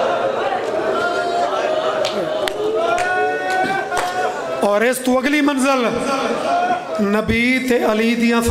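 A man speaks passionately into a microphone through a loudspeaker, his voice rising into a chanting wail.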